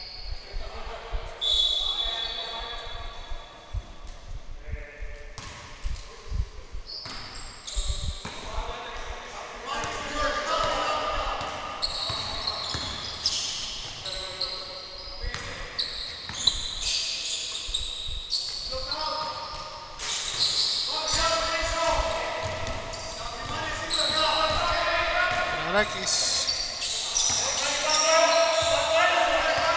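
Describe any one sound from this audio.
Men shout and call out to each other across the hall.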